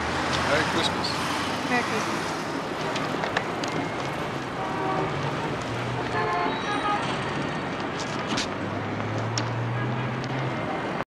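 A busy crowd murmurs outdoors on a city street.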